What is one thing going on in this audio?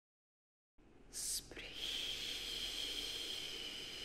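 Water laps gently against a rocky shore.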